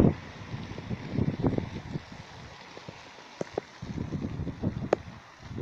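A car drives past on a wet road, its tyres hissing.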